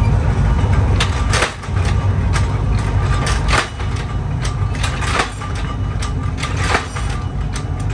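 A power press punches metal with loud repeated clanks.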